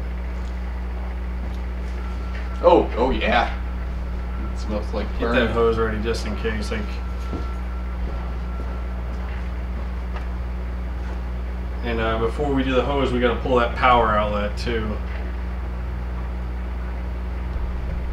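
A microwave oven hums steadily as it runs.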